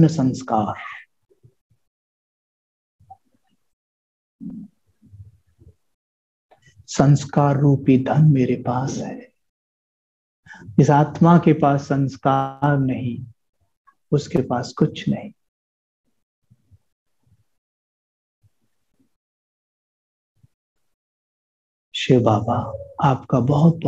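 A man speaks calmly and warmly into a close microphone, pausing often.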